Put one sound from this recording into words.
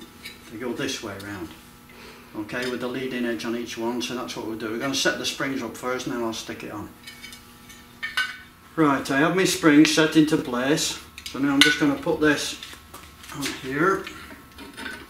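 An elderly man speaks calmly and explains, close by.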